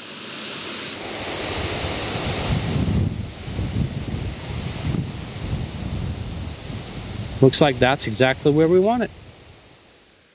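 A sprinkler sprays water with a steady hiss.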